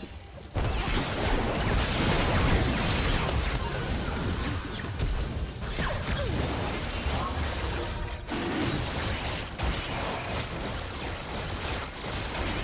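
Magic spells burst and crackle in a fast fight.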